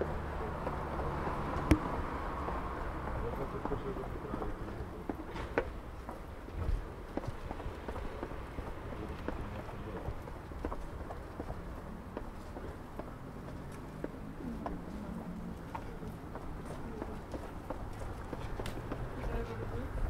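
Footsteps tap on stone steps outdoors.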